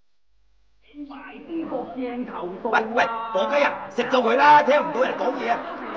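An older man speaks loudly and urgently, close by.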